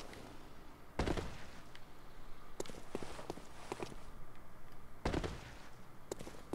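Heavy thuds land as a figure drops down from a height.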